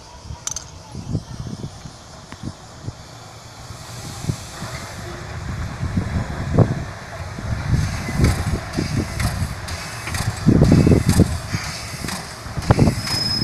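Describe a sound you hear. Steam locomotive wheels clank and thump over the rail joints.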